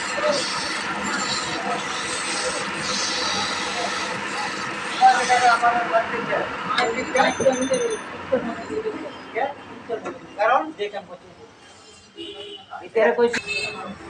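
A lathe motor hums steadily.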